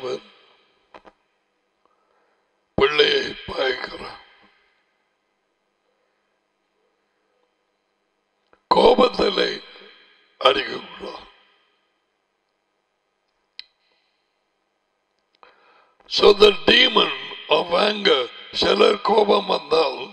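An elderly man speaks calmly into a close microphone, in bursts with pauses.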